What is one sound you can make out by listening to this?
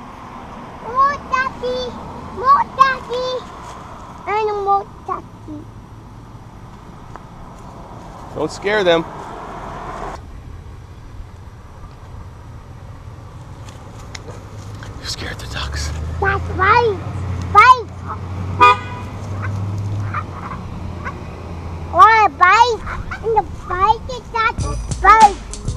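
A young child talks in a high voice close by.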